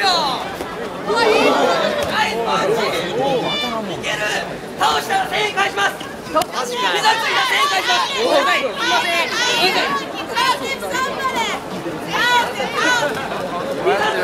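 A crowd cheers and laughs loudly.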